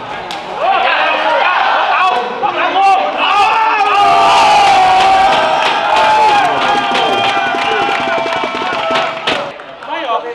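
Young men shout and cheer loudly.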